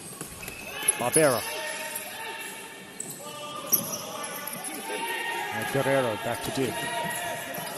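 Sneakers squeak sharply on a hall floor.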